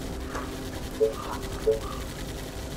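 A short interface click sounds twice.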